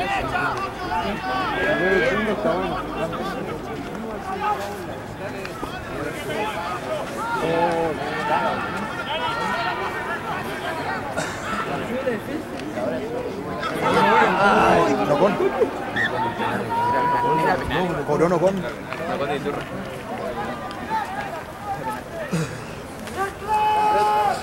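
Rugby players shout and call to each other across an open field.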